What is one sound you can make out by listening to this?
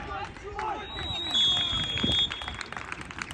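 A referee's whistle blows a long, shrill blast.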